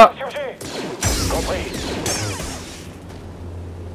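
A lightsaber ignites with a crackling hiss.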